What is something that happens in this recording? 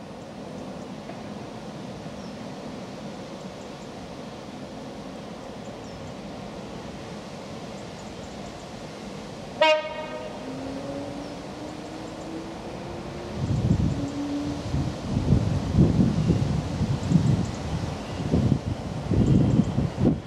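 A diesel train engine rumbles as it approaches, growing louder.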